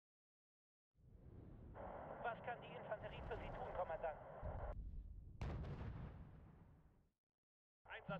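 An artillery shell explodes with a deep rumbling boom.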